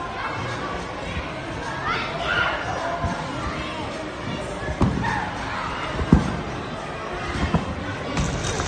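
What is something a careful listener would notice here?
Trampolines thump as people land and bounce.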